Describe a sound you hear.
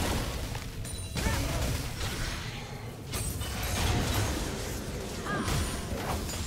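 Video game spells whoosh and crackle during a fight.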